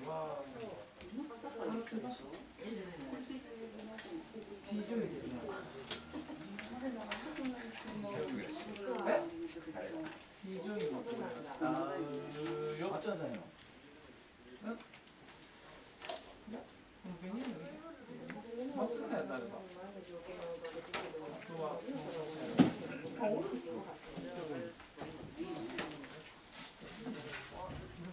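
Paper rustles softly close by.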